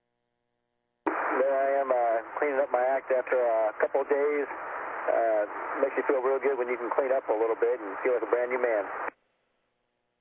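A man talks calmly, close by, heard through a thin, radio-like line.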